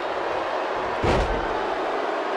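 A heavy thud sounds as a wrestler slams onto the mat.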